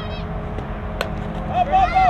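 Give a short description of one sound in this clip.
A softball bat cracks against a ball.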